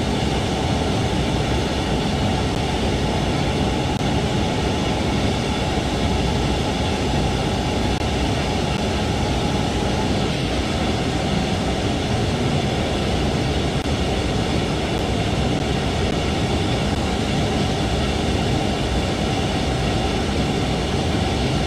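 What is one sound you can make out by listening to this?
A train rumbles steadily along the tracks at high speed.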